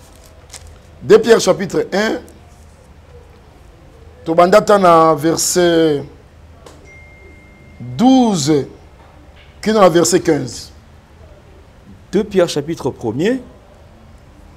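A man speaks fervently into a microphone in short, emphatic bursts with pauses between.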